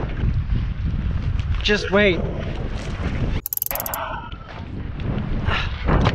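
Waves slosh against a boat's hull.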